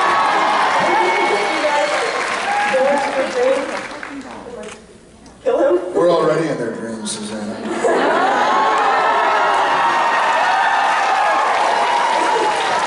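A woman speaks through a microphone over loudspeakers.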